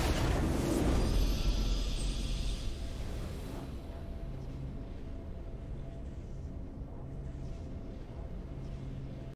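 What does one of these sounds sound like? A triumphant game fanfare swells, then settles into a soft, steady tune.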